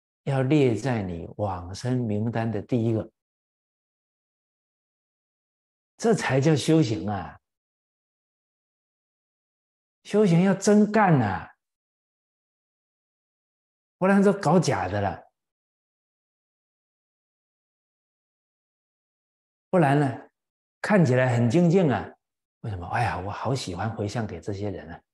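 An elderly man speaks with animation into a close microphone, in short bursts with pauses.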